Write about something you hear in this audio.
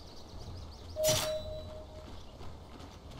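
A bright chime rings out briefly.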